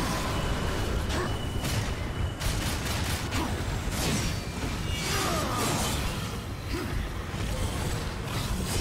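Swords clash and slash in quick, heavy blows.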